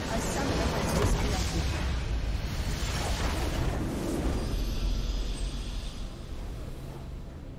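A crystal structure bursts with a loud, rumbling blast of magic that slowly dies away.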